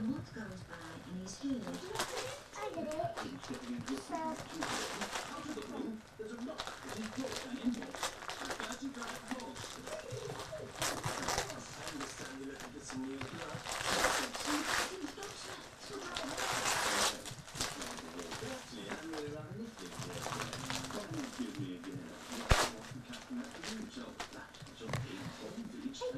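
Wrapping paper crinkles and rustles as a small child tears at a gift.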